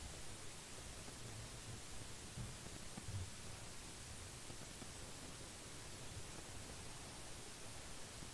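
People shuffle and settle into their seats.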